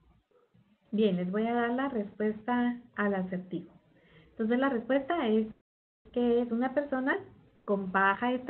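A woman speaks steadily over an online call.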